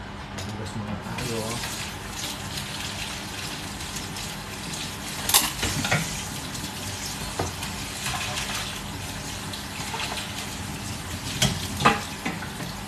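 Water runs into a sink.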